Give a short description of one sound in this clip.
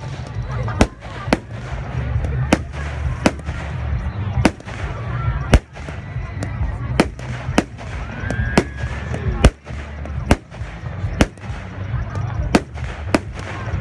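Fireworks crackle and fizz overhead.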